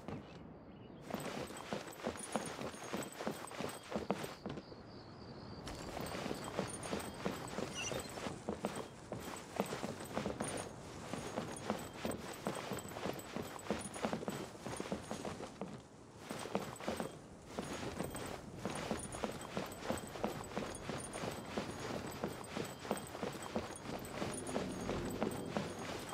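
Quick footsteps patter on wooden boards.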